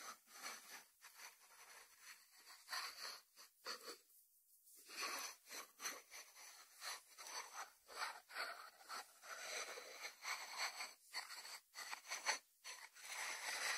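Fingertips rub and scratch over a ceramic lid.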